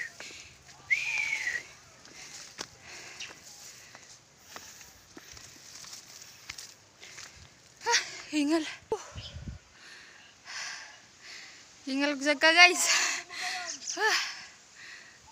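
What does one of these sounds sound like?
A young woman speaks with animation close to a phone microphone.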